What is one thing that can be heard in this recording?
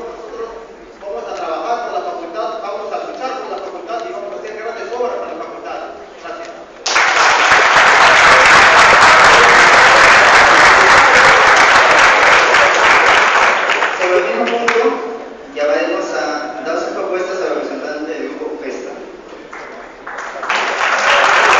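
A man speaks through a loudspeaker in an echoing hall.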